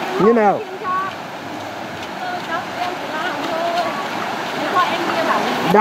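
A shallow stream trickles over stones.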